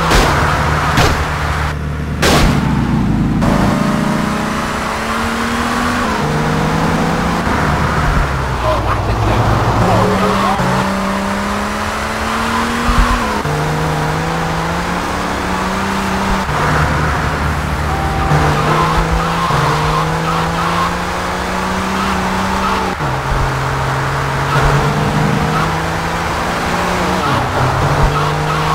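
A car engine hums and revs steadily as a car drives along.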